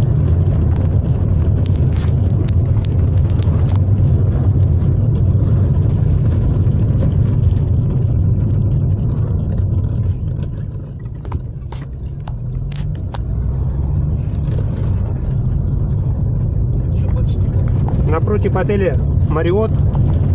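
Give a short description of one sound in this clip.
A car engine hums low and steady from inside a moving car.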